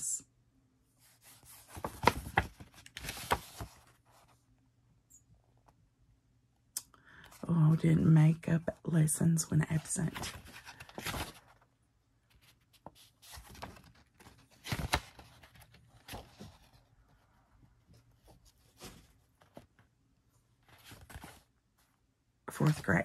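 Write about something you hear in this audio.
Paper pages rustle and flip.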